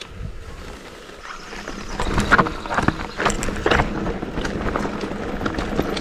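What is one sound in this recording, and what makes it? Bicycle tyres crunch and rattle over a stony dirt trail.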